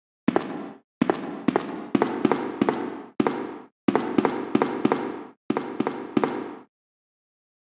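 Footsteps echo on a hard floor.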